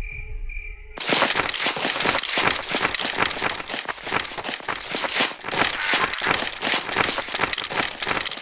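Footsteps run quickly over gravel and grass.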